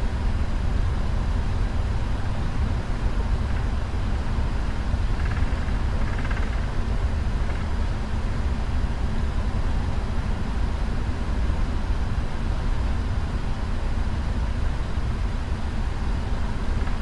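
Jet engines rumble steadily at idle as an airliner taxis.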